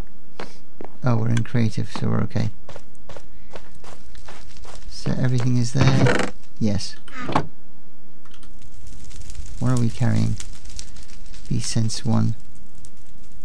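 A middle-aged man speaks calmly into a close microphone, in short bursts.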